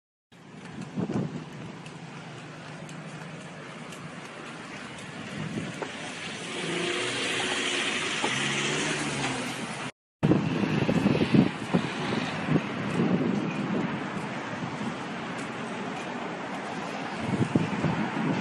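Traffic hums along a street outdoors.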